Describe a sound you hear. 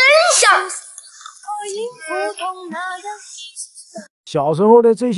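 A young boy speaks with animation, close by.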